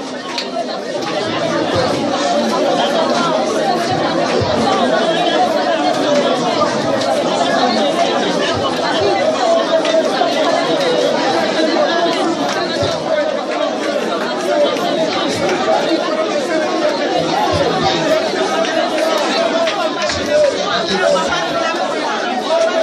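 A crowd sings and cheers in a room.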